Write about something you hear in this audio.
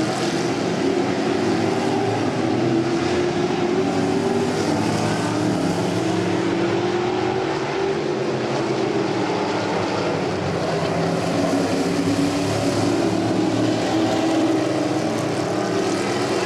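Race car engines roar loudly as the cars speed around a track.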